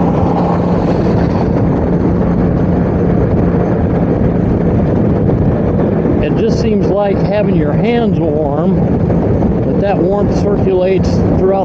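A motorcycle engine hums steadily at highway speed.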